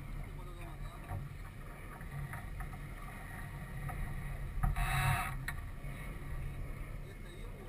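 Water splashes against a sailboat's hull.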